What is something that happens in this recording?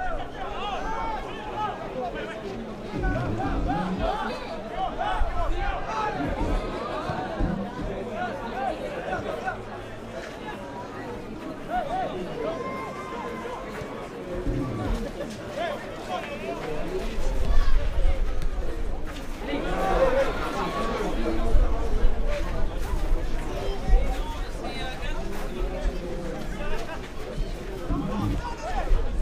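A crowd of spectators murmurs and calls out outdoors.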